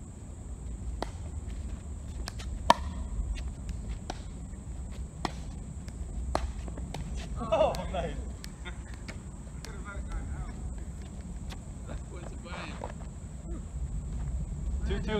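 Paddles hit a plastic ball with sharp pops.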